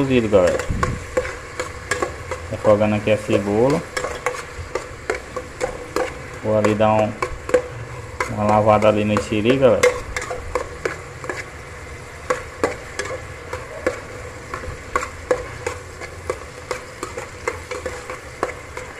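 A metal spoon scrapes and clinks against a metal pot while stirring.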